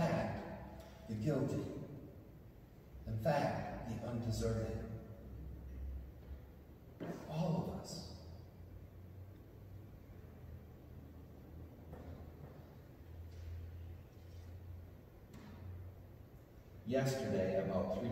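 A man speaks slowly into a microphone in a large echoing hall, with long pauses.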